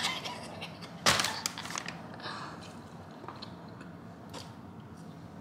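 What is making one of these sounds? Crisp tortilla chips crunch as a young woman bites and chews.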